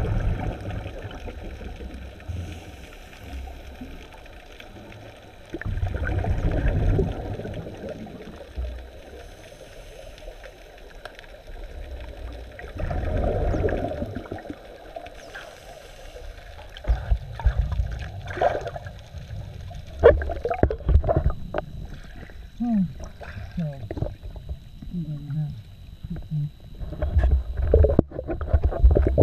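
Water swirls and rumbles, muffled underwater.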